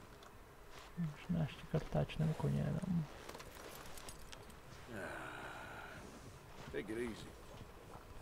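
A man speaks calmly and softly to a horse.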